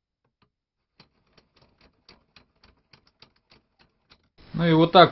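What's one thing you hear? A metal crank wheel clicks softly as it is turned by hand.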